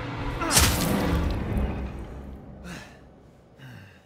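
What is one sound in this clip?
A young woman screams and groans close by.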